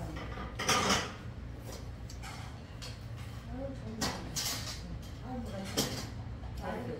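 Spoons and chopsticks clink against bowls.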